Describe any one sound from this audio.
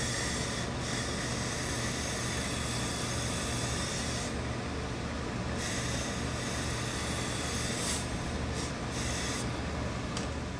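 A steam iron hisses in bursts as it presses cloth.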